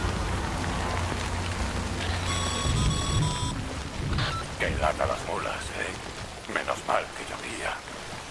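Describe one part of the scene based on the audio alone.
Water splashes as a person wades through a stream.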